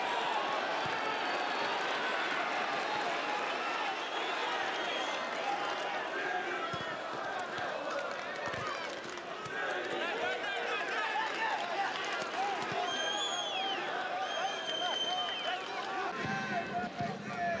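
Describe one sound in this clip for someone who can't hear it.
A large crowd chants and cheers steadily in an open stadium.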